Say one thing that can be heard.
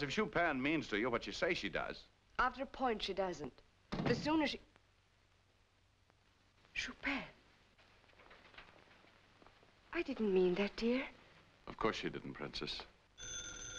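A young woman speaks tensely and close by.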